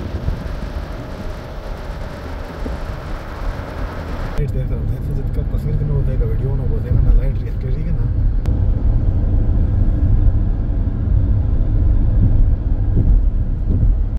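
A car drives along a road with a steady low rumble of engine and tyres.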